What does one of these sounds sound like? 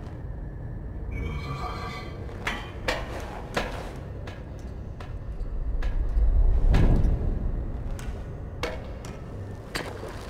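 Metal ladder rungs clank under climbing hands and feet.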